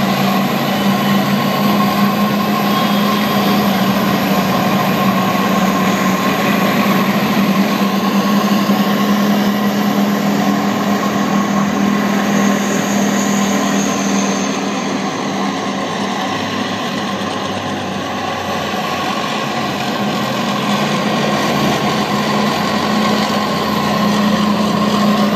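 A tank engine rumbles and its tracks clatter on the road nearby.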